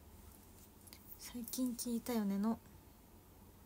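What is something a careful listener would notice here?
A young woman speaks briefly and calmly, close by.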